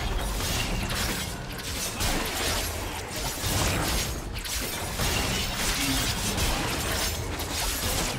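Magic spells burst and crackle in a fantasy battle game.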